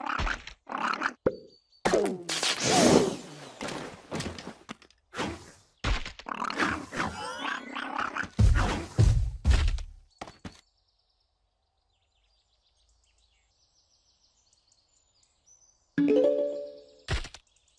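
Cartoon peas pop as they are fired in quick bursts.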